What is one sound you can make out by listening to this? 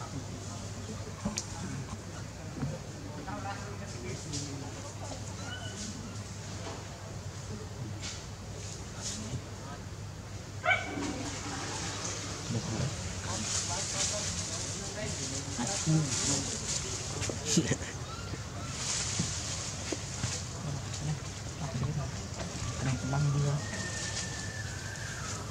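Leaves rustle and branches creak as a monkey climbs through a tree.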